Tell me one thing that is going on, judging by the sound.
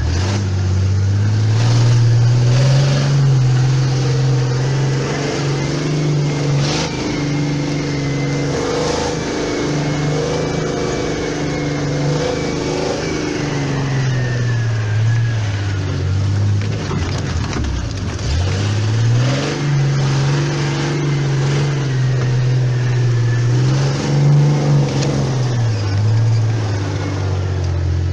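An engine revs up and down loudly as a vehicle drives over rough ground.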